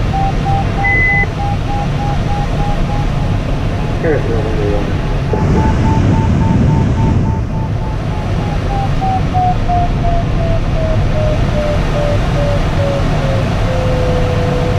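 A flight instrument beeps in quick, even pulses that slowly fall in pitch.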